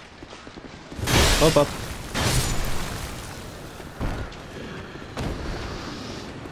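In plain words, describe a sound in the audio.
Sword blows clash and slash loudly.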